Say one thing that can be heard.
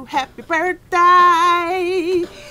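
A woman shouts loudly close by.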